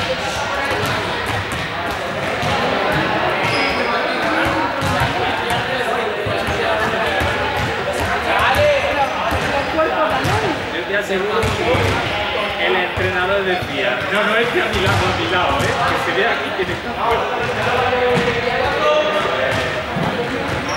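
Balls bounce on a hard floor with sharp thuds.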